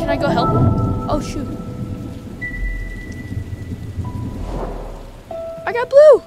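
Game music plays with bright chiming tones.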